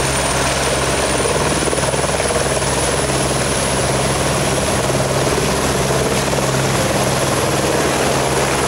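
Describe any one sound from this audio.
A helicopter's engine rises slightly in pitch as it lifts off.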